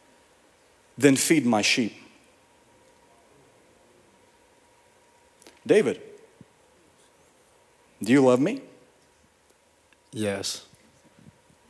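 A young man speaks into a microphone through loudspeakers, pausing between short phrases.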